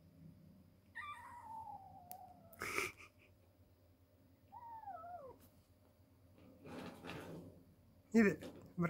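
A cat meows plaintively from close by.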